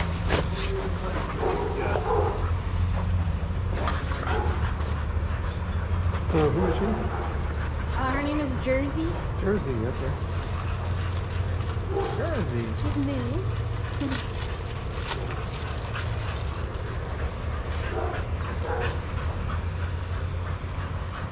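Dogs' paws patter and scuff on sand.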